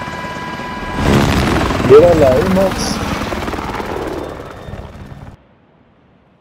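A helicopter roars past with a loud rush and fades.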